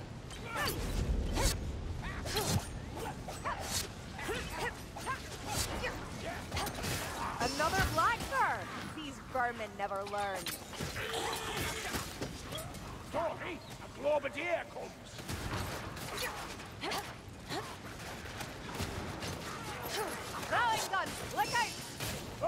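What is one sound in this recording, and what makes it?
Blades swish and strike against creatures in quick bursts.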